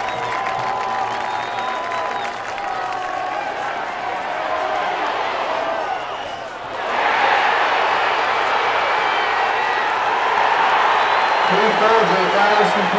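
A large crowd cheers outdoors, swelling into a loud roar.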